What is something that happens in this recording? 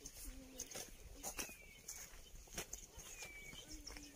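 Footsteps crunch on a dirt path outdoors.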